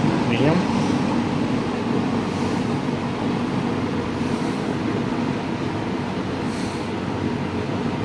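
A box fan whirs steadily with a low rumbling hum.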